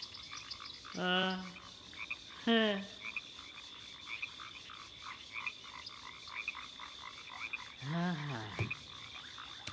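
A creature lets out short, gliding, growling calls.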